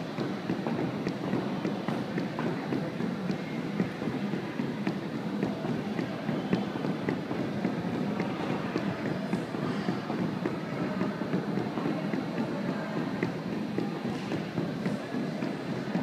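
Heavy battle ropes slap over and over on a wooden floor in a large echoing hall.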